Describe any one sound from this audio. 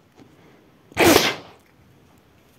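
A balloon bursts with a loud pop.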